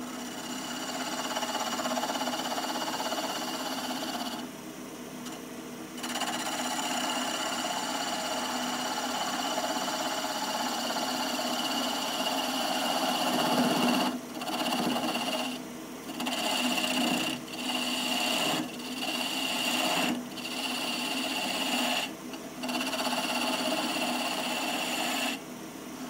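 A lathe hums steadily as it spins.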